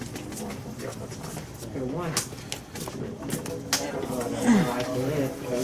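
Playing cards riffle and snap softly as they are shuffled by hand.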